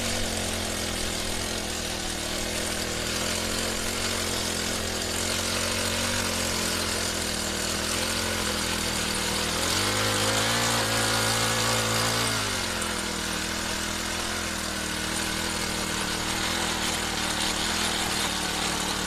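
Tiller blades churn through soil.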